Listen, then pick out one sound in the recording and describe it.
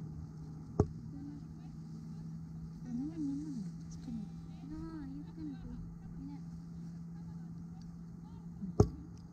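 A light wind blows outdoors through grass.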